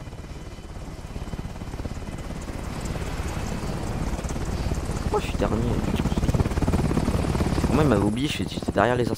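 A helicopter engine drones loudly.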